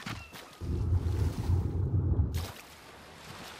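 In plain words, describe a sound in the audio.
Water churns and rumbles, muffled, as a swimmer moves underwater.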